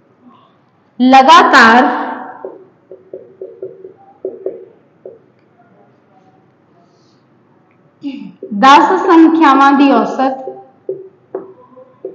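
A young woman speaks clearly and with animation, close by.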